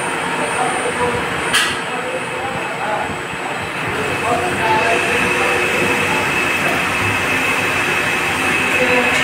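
A machine tool hums and whirs steadily.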